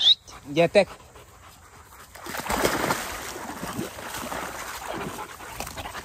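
Dogs pant nearby.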